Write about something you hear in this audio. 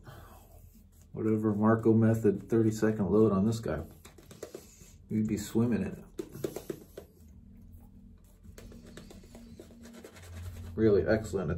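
A shaving brush swishes against a lathered face.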